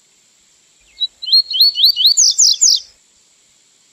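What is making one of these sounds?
A small songbird sings a quick series of sharp, rising whistled notes.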